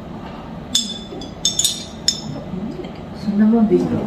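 Liquid pours into a glass.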